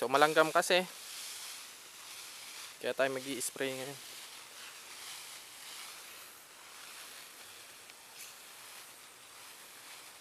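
A spray bottle hisses as it sprays a fine mist.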